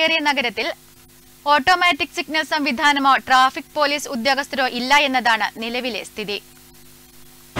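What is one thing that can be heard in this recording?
A woman speaks steadily and clearly into a microphone.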